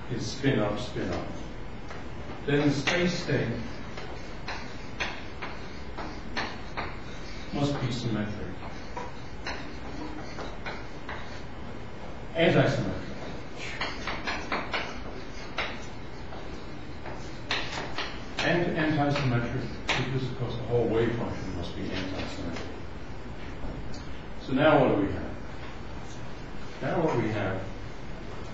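An elderly man lectures calmly in a room with a slight echo.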